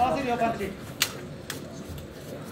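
Boxing gloves smack together in punches.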